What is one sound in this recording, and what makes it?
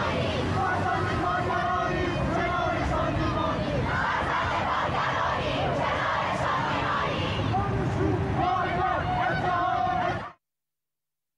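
A crowd chants loudly outdoors.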